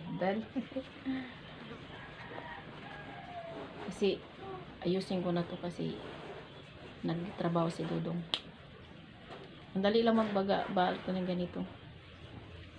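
A woman talks calmly and close by.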